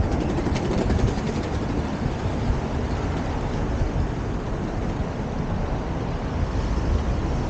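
Cars drive past on a nearby street.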